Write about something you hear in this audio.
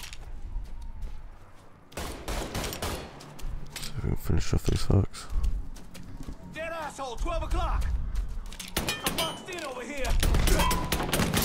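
Pistol shots crack out in sharp bursts.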